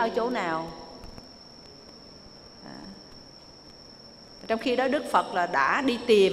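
An elderly woman speaks calmly into a microphone, with pauses.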